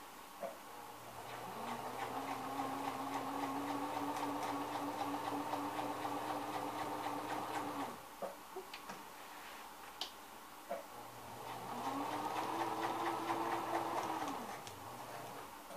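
A sewing machine hums and whirs steadily as it stitches.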